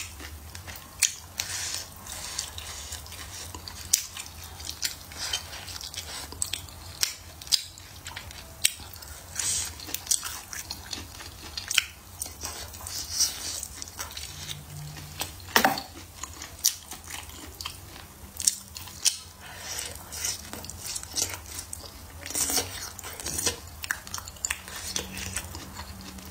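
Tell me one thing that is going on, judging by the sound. A young woman chews and slurps food wetly, close to the microphone.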